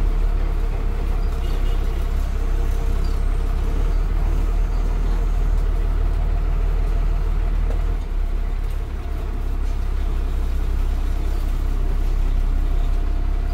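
A bus engine rumbles loudly and steadily from close by.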